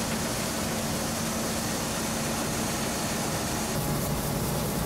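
Old machinery hums and whirs with a steady drone.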